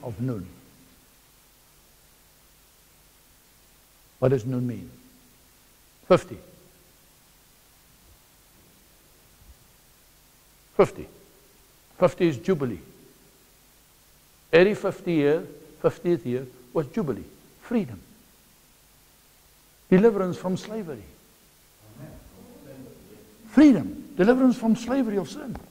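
A middle-aged man speaks with animation through a clip-on microphone, in bursts with pauses.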